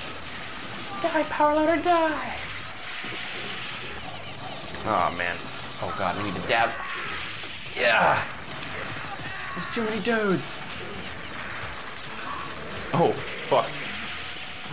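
Game characters let out pitched cries and screeches.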